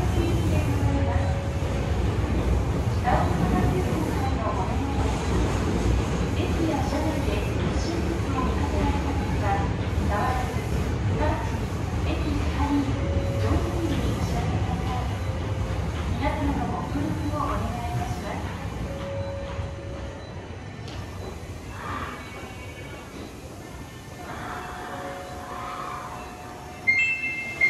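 Train brakes squeal in short high tones.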